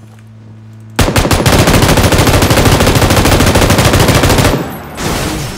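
A heavy machine gun fires a long, rapid burst.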